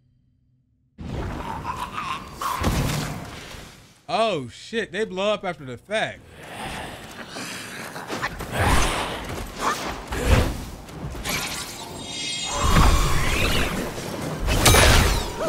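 Weapons clash and strike in a game fight, with whooshes and impacts.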